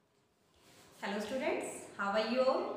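A woman speaks clearly and with animation close to a microphone.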